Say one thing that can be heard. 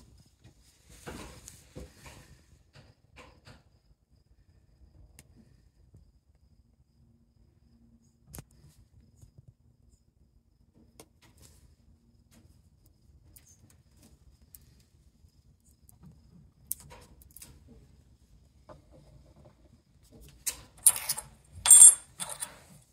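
Small objects knock and clink on a wooden table.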